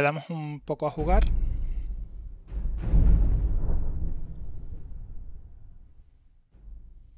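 A deep rumbling boom swells and slowly fades.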